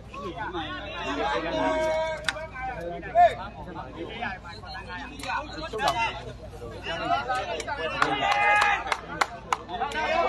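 A man nearby shouts with animation.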